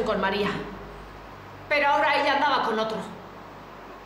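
A middle-aged woman speaks quietly and earnestly nearby.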